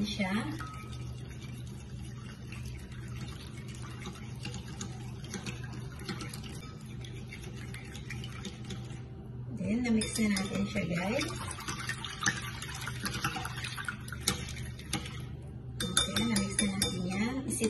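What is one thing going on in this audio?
A whisk clicks and scrapes against a glass bowl, beating eggs.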